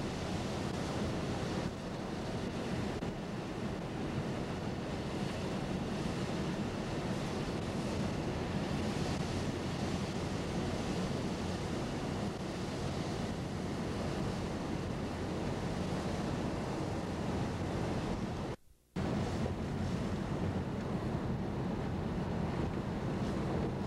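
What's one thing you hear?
Tyres rumble on a wet road.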